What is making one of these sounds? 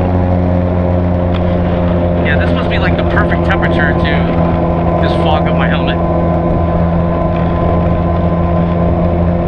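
A motorcycle engine hums steadily at cruising speed.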